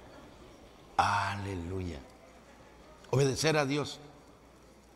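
A middle-aged man speaks loudly and with fervour through a microphone in a large echoing hall.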